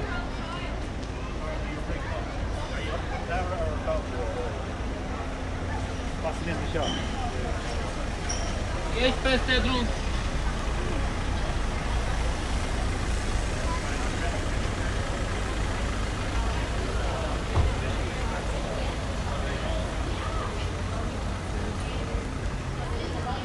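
Footsteps tap on paving.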